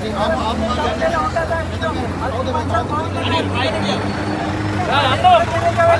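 Several people talk over one another nearby.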